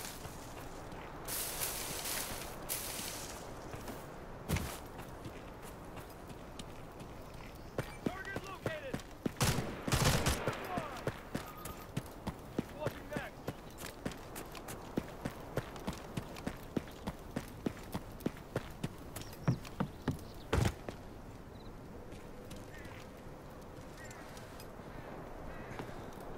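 Footsteps crunch on dirt and dry grass.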